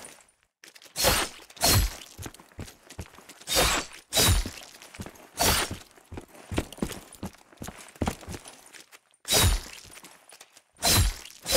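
Loud blasts boom now and then with a sharp ring.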